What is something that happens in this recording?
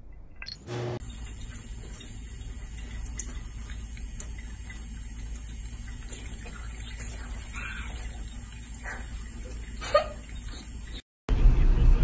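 Water runs steadily from a tap onto a cat's head.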